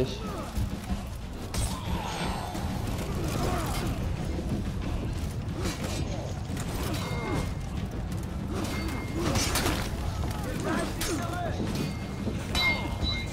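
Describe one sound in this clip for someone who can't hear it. A battle rumbles on all around.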